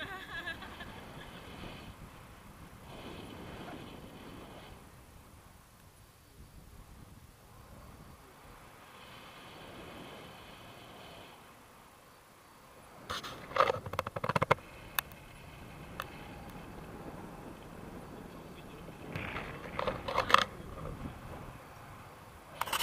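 Wind rushes steadily past close by, outdoors.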